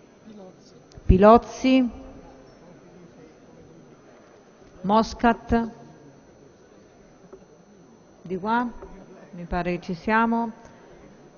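A man speaks briefly through a microphone in a large echoing hall.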